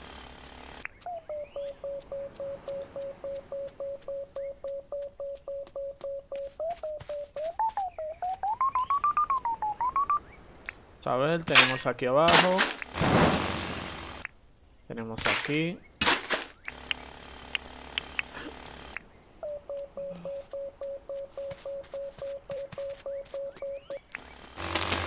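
A metal detector beeps in a fast, even pulse, its tone climbing and wavering as it nears something.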